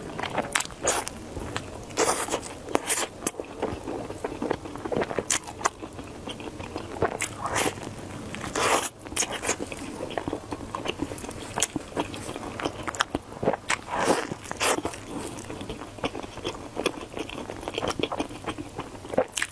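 A woman chews food wetly and smacks her lips close to a microphone.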